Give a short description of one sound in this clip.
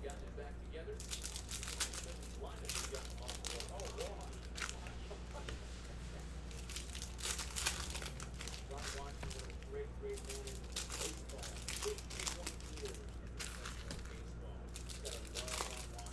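Foil card wrappers crinkle and rustle close by.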